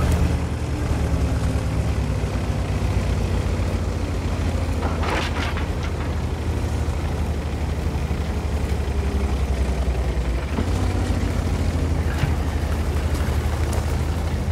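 A tank engine rumbles steadily as the tank drives.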